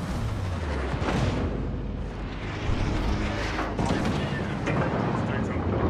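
Heavy ship guns boom in several loud blasts.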